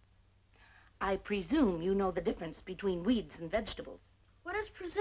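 A woman shouts loudly.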